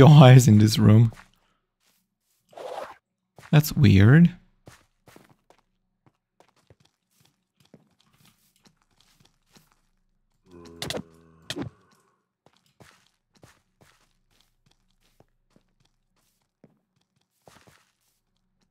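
Footsteps patter softly on grass and stone.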